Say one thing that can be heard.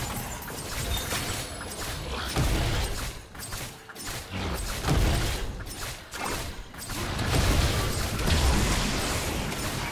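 Fantasy combat strikes thud and clash repeatedly.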